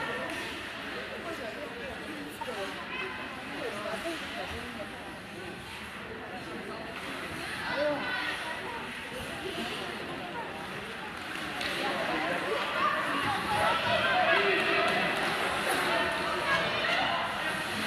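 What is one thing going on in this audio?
Young players shout and call out to each other across a large echoing rink.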